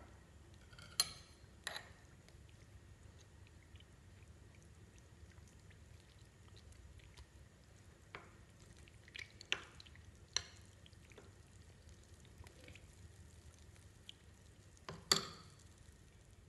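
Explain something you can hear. A metal spoon clinks against a glass bowl while stirring.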